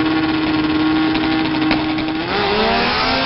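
A small rear-engined car's engine revs hard at the start line.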